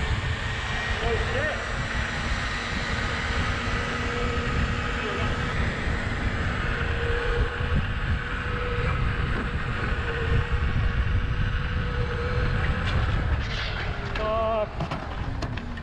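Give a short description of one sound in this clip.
An electric unicycle motor whines.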